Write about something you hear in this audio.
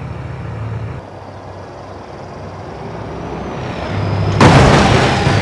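A truck engine rumbles as it drives along.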